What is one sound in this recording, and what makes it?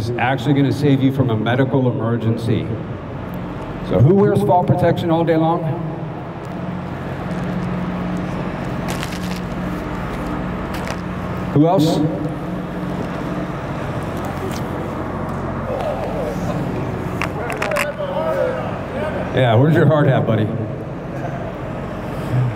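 A middle-aged man speaks calmly into a microphone over a loudspeaker outdoors.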